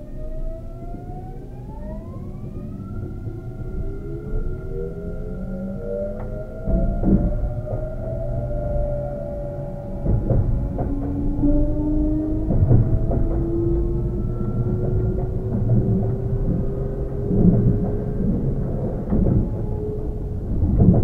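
An electric train's motor whines, rising slowly in pitch.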